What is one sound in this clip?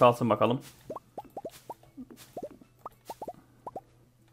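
Soft pops play as fruit is picked.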